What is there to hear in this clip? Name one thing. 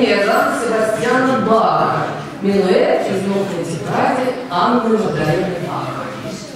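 A middle-aged woman speaks calmly into a microphone in an echoing hall.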